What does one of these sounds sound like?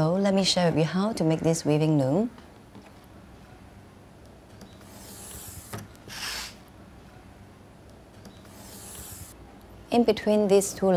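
A young woman speaks calmly and clearly.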